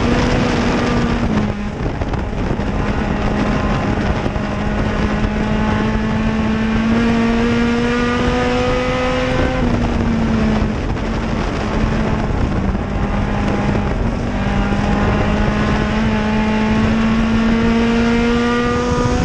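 Tyres rumble and spray over a dirt track.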